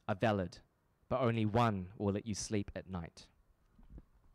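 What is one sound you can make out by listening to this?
A young man reads aloud into a microphone, heard through loudspeakers in a large room.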